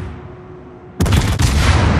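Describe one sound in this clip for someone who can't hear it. Heavy naval guns fire with loud booming blasts.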